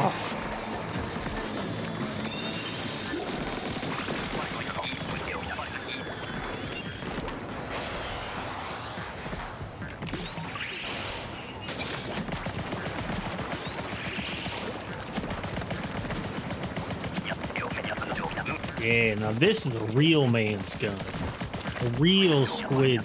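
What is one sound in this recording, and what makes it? Upbeat electronic game music plays steadily.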